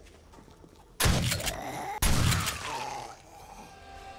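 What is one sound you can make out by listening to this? A rifle fires a few shots.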